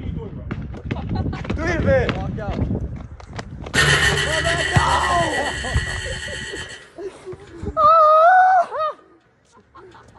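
Young men shout and laugh outdoors.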